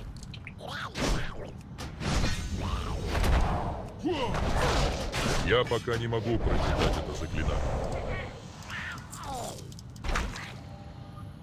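Blades slash and strike repeatedly in a fast fight.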